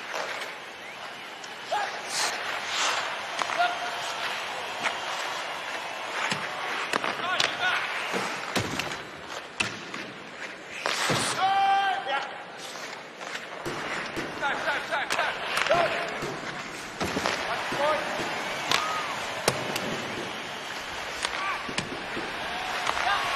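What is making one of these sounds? Hockey sticks clack sharply against a puck.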